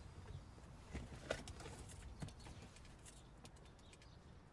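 Clothing rustles as a young man shifts in a car seat.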